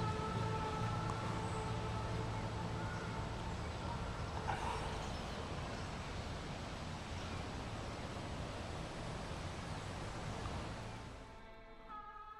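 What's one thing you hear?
Leaves rustle in a breeze outdoors.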